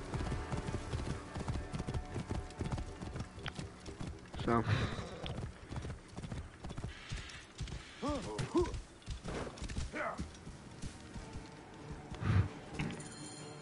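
Horse hooves pound steadily on a dirt path.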